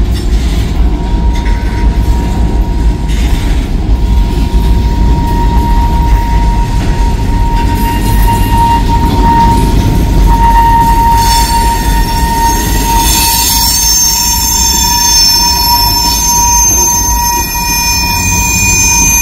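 Train wheels squeal with a steady high whine.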